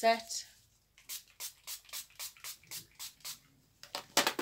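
A small bottle rattles as it is shaken quickly.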